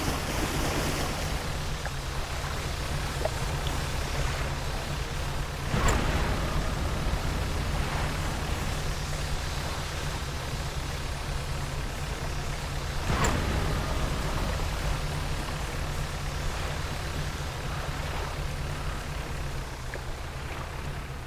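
Water splashes and washes around a moving boat.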